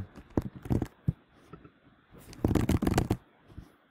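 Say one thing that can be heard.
A computer keyboard clicks as someone types.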